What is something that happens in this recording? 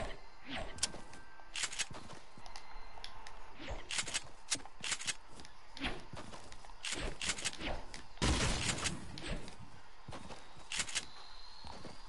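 Footsteps thud quickly on soft ground.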